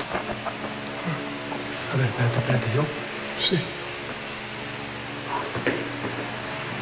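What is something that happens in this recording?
A middle-aged man speaks quietly and close by.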